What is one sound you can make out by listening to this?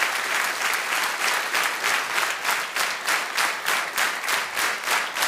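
An audience claps in rhythm.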